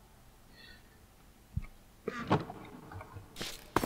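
A wooden chest lid thumps shut.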